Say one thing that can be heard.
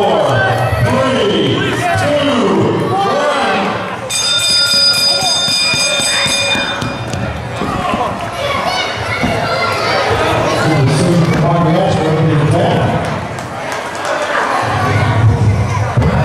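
A crowd of men, women and children shouts and cheers in a large echoing hall.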